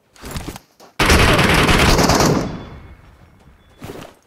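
A loud gunshot blast hits and slowly fades.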